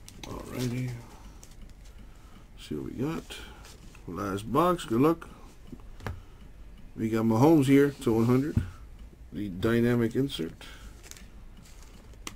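Trading cards rustle and flick as they are shuffled by hand.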